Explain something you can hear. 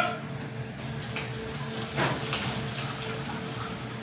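Water pours from a jug into a plastic bottle.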